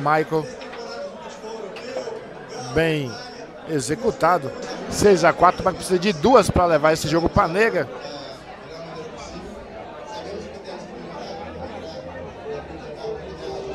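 A crowd of men murmurs and chatters in the room.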